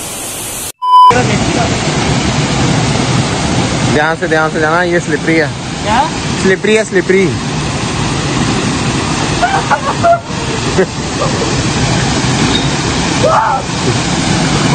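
A waterfall splashes and rushes steadily nearby.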